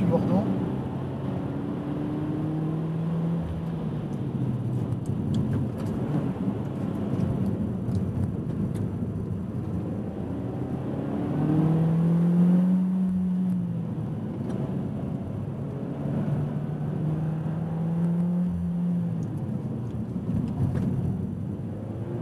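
Tyres hum steadily on the road.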